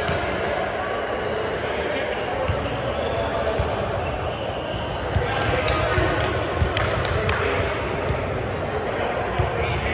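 Many people talk at once in a large echoing hall.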